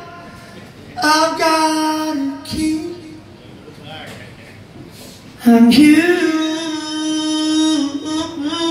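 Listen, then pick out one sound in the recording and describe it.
A woman sings loudly through a microphone in a large hall.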